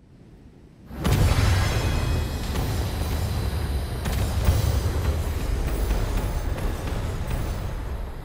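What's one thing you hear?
Explosions boom and rumble.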